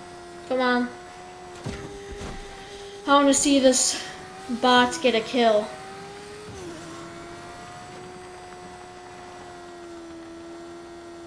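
A motorbike engine hums steadily, its pitch shifting slightly as it rides.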